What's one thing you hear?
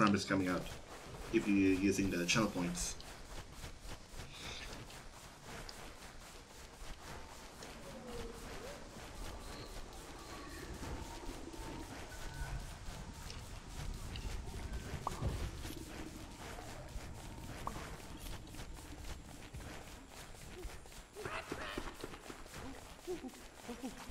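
Footsteps patter steadily over sand and dirt.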